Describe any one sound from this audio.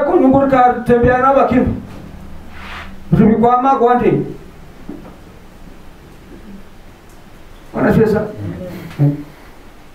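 A middle-aged man preaches forcefully into a headset microphone, in bursts with pauses.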